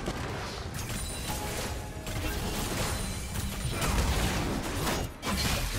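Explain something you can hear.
Game weapons clash in quick, repeated hits.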